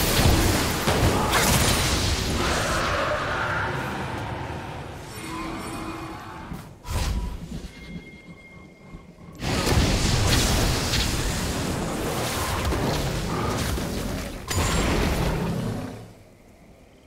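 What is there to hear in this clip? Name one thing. Magic spells whoosh and burst amid video game combat.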